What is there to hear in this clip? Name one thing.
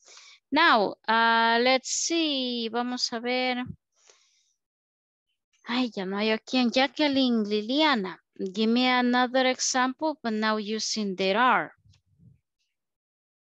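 A woman speaks slowly and clearly over an online call, pausing briefly.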